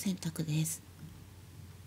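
Mahjong tiles click sharply against a table.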